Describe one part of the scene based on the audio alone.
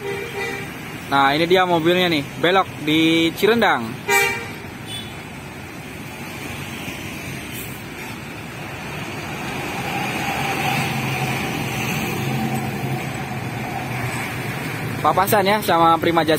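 A bus horn plays a loud, warbling tune several times.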